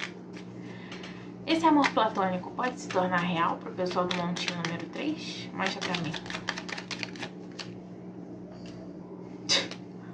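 Cards flick and rustle as they are shuffled by hand.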